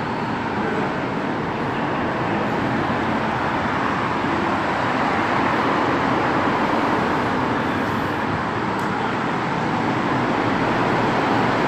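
Traffic roars steadily past close by.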